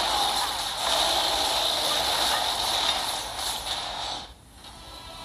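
Magic spell effects crackle and whoosh.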